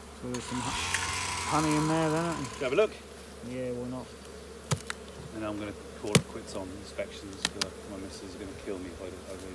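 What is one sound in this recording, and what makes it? A metal hive tool scrapes and knocks against wooden boxes.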